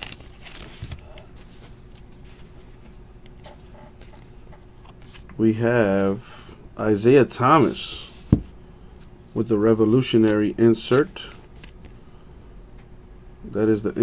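Cards rustle and slide softly as hands shuffle through them.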